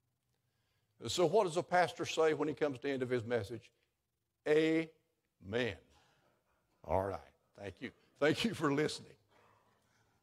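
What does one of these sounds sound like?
An elderly man speaks calmly into a microphone in a room with a slight echo.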